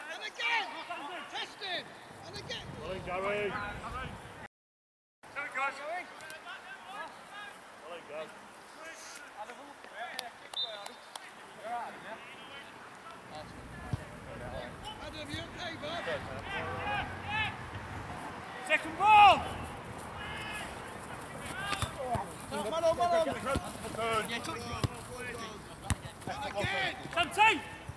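Men shout and call out across an open field.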